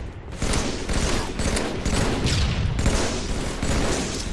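A scoped rifle in a video game fires in bursts.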